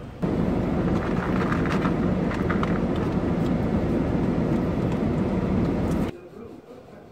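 A paper gift bag rustles and crinkles.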